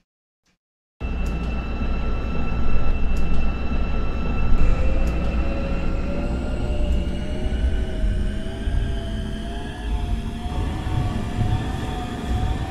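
A subway train rumbles along on its rails.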